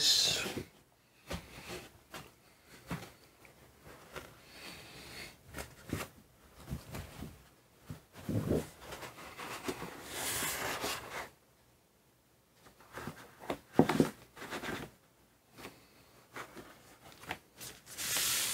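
A large sheet of paper rustles and flaps as it is handled.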